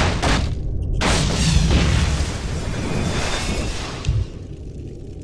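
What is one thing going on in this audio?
A magical burst whooshes and shimmers.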